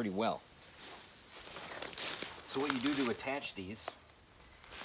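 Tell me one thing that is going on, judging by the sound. A man talks calmly nearby, outdoors.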